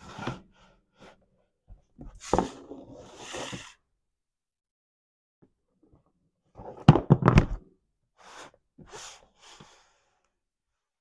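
A cardboard box rustles and thumps as hands handle it.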